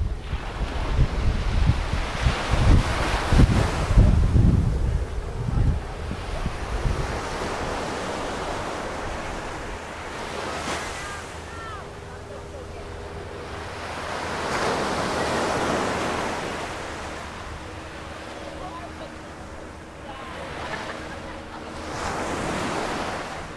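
Waves break and wash up on the shore.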